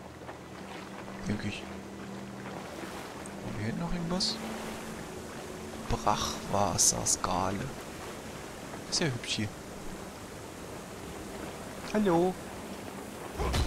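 A character splashes while wading through water.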